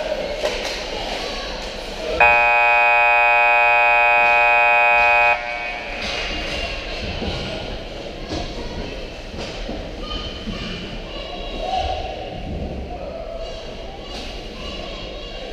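Ice skates scrape and carve across the ice in a large echoing rink.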